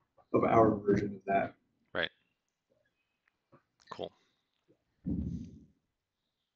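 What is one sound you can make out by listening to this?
A man speaks in short phrases through an online call.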